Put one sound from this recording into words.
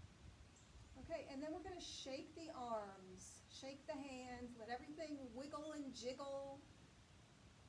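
A middle-aged woman speaks calmly, close by.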